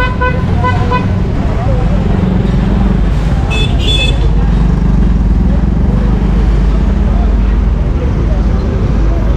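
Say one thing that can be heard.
Motorcycle and car engines rumble steadily in nearby street traffic.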